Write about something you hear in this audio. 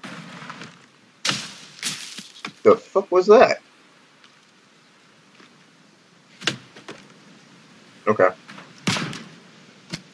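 An axe chops into a tree trunk with sharp knocks.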